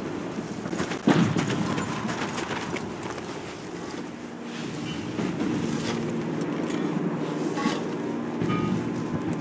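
Footsteps crunch on dry gravel and dirt.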